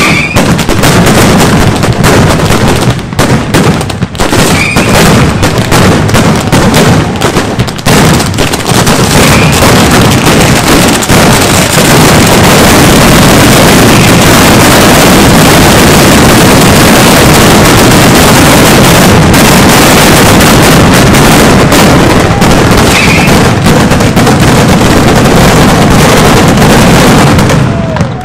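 Firecrackers burst in a rapid, deafening crackle that builds into a continuous roar.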